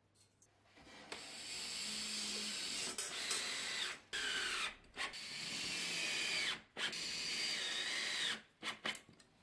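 A cordless drill whirs in bursts.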